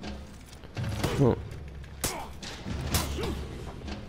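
Metal weapons clash and strike in sharp blows.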